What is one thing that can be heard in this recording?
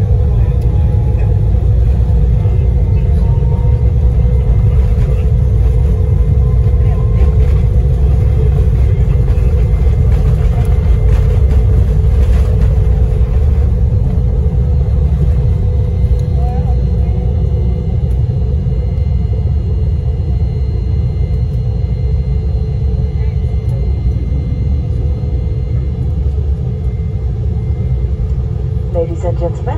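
Jet engines roar loudly and steadily from inside an airliner cabin.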